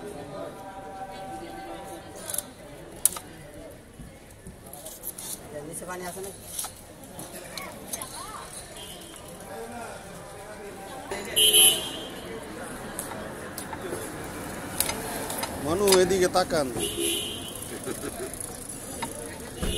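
A heavy knife slices through raw fish.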